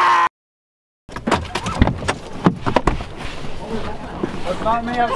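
A car door unlatches with a click and swings open.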